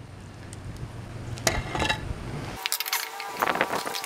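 A sticky lump drops onto concrete with a wet slap.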